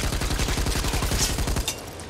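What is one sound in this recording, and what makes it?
A creature bursts apart with a wet splatter.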